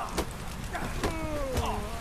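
A bonfire crackles close by.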